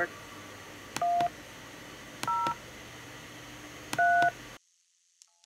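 Keypad tones beep as digits are dialled on a phone call.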